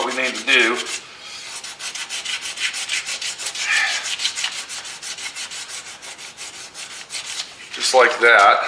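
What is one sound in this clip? Sandpaper scrubs rapidly back and forth on a metal panel.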